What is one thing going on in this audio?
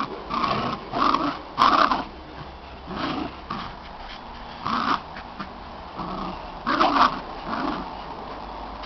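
A dog growls and snarls playfully in short bursts.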